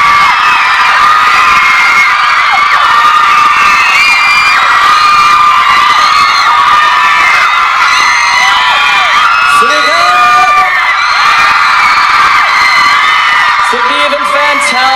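A large crowd of young women screams and cheers loudly outdoors.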